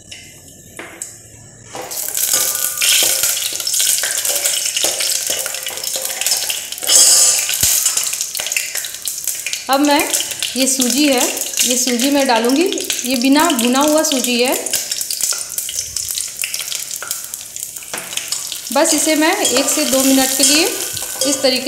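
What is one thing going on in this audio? A metal spoon scrapes and clinks against a steel pot.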